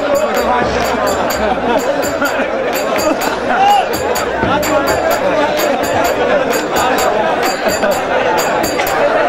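Elderly men sing loudly together outdoors.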